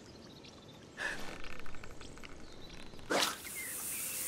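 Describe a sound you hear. A fishing rod swishes through the air in a cast.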